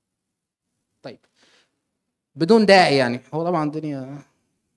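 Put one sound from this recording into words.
A man lectures through a microphone.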